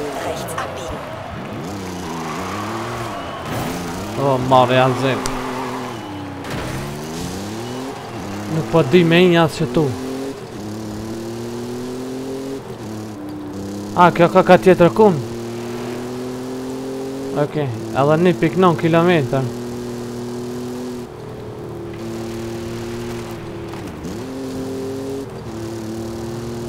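A car engine roars and revs up as it accelerates.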